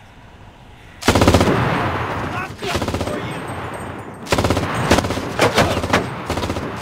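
A heavy machine gun fires loud bursts.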